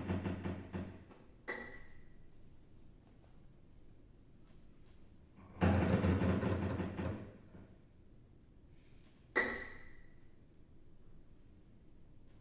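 A violin, a double bass and a cello play together in short, loud bursts with quiet pauses, in a reverberant room.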